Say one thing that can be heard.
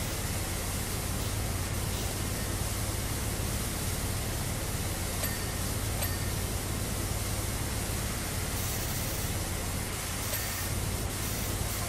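A pressure washer sprays water in a steady hissing rush.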